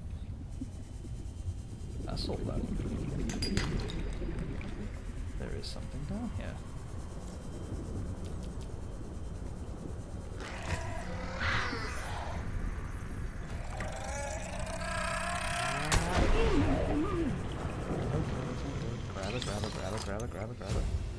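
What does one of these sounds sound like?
A small underwater vehicle hums and rumbles low and steadily.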